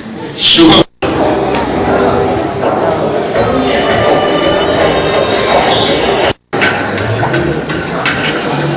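A crowd chatters in a busy, echoing room.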